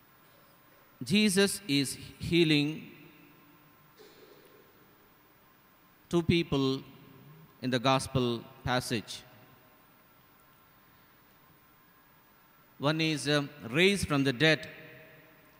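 A young man speaks slowly and calmly through a microphone, with pauses, in a reverberant hall.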